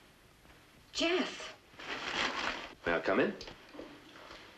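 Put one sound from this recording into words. A woman speaks with surprise, close by.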